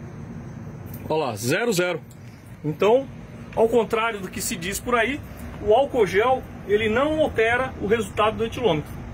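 A man speaks calmly and close to a microphone.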